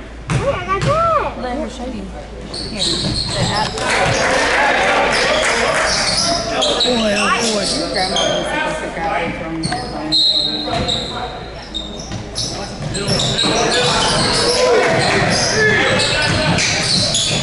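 A crowd of spectators talks and cheers in an echoing gym.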